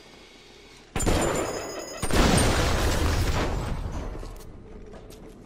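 A shotgun fires two loud blasts that echo and fade.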